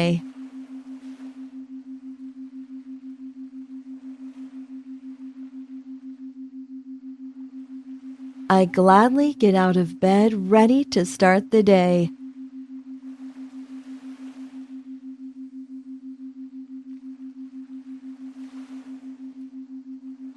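Waves break and wash onto a shore.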